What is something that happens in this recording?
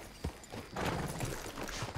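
A horse's hooves clop on the ground.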